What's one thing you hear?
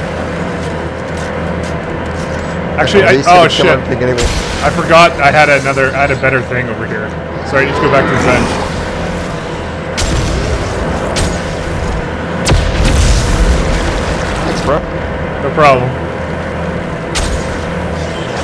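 Energy weapon shots fire in short bursts.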